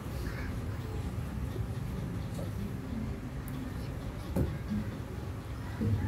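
A ceiling fan whirs steadily overhead.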